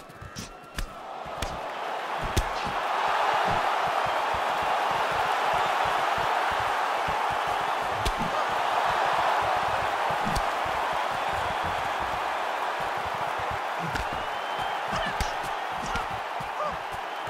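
A crowd cheers and roars loudly.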